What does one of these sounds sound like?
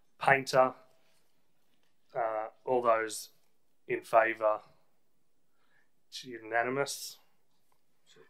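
A middle-aged man speaks calmly in short phrases through a microphone.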